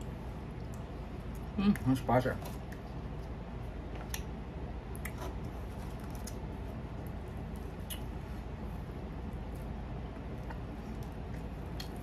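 A middle-aged woman chews food with small clicking mouth sounds.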